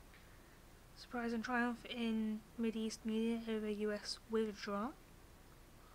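A young woman reads out aloud close to a microphone.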